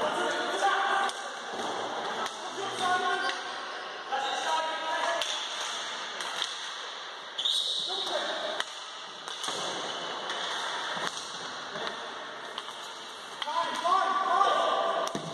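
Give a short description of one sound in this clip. Hockey sticks clack against a ball on a hard floor.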